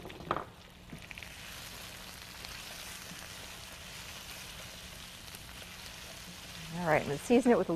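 Vegetables sizzle softly in a pan.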